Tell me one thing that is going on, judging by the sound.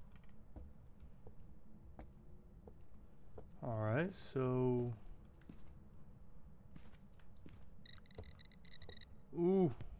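Footsteps thud softly.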